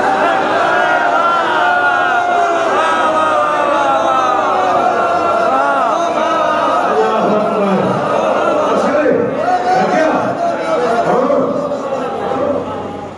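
A man recites passionately into a microphone through loudspeakers.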